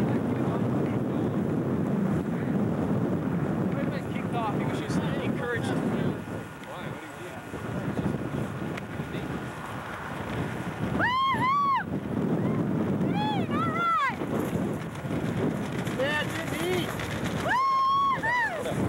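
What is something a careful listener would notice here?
Wind rushes and buffets past in open air.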